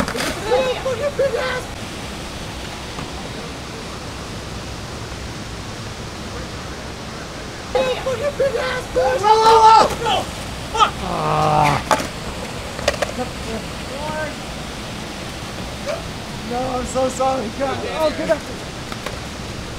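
Several men shout and laugh loudly.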